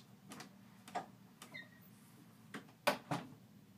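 A door swings shut with a latch click.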